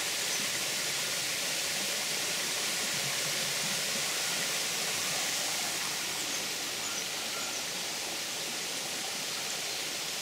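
A shallow stream splashes and gurgles over rocks.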